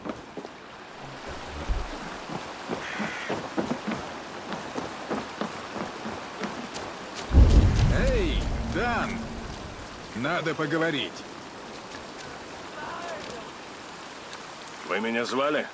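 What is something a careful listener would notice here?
Footsteps thud on wooden boards and dirt.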